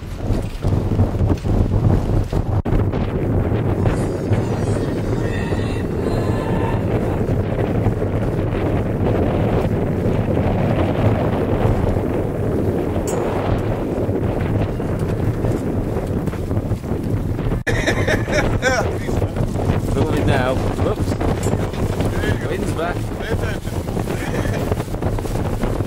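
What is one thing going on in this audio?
Strong wind buffets the microphone throughout.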